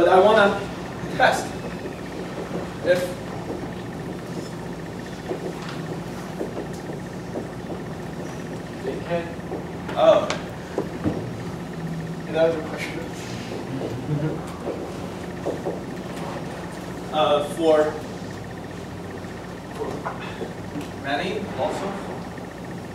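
A young man speaks calmly, lecturing.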